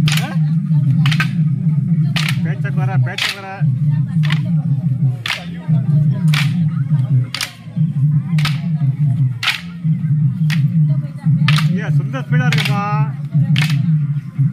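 Wooden sticks clack together in a steady rhythm, about once a second.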